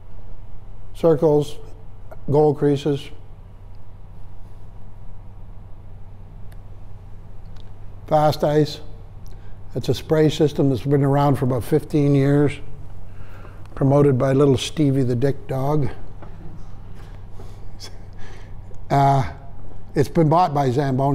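An elderly man speaks calmly, pausing between phrases.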